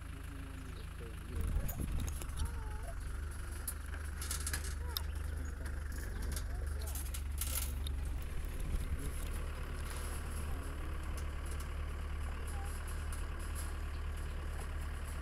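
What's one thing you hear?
A vehicle engine rumbles steadily while driving over rough ground.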